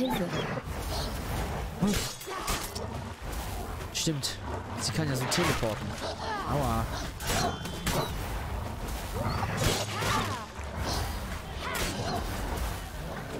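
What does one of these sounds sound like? Wolves snarl and growl.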